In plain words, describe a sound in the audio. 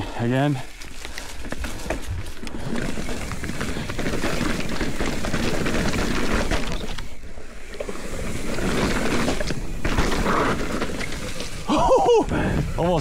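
Mountain bike tyres roll and crunch over dry leaves and dirt.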